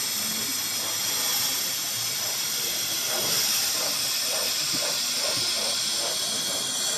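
A model steam locomotive hisses steadily as it chuffs slowly along.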